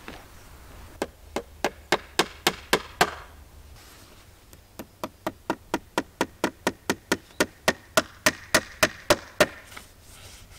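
A hammer taps small nails into wood in quick, regular blows.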